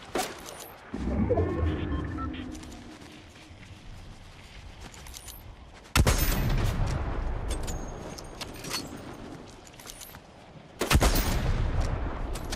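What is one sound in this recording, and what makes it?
A rifle fires loud booming shots that echo away.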